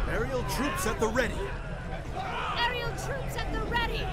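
A young man shouts a command, heard through a game's sound.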